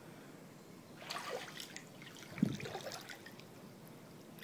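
Pool water splashes and sloshes as a floating body is drawn through it.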